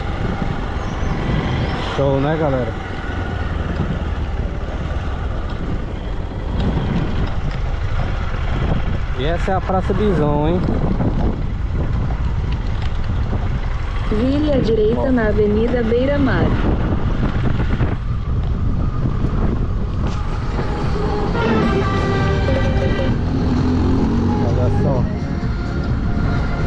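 A motorcycle engine runs steadily close by.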